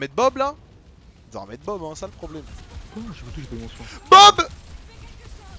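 A young man exclaims loudly and talks with excitement close to a microphone.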